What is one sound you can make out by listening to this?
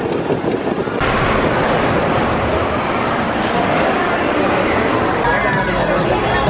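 A wooden roller coaster train rattles and rumbles along its track.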